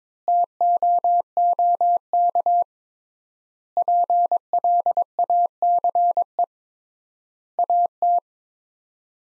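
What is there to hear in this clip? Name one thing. A telegraph key taps out Morse code in short and long steady beeps.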